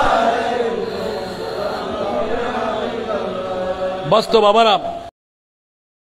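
A middle-aged man chants and preaches loudly into a microphone, heard through a loudspeaker.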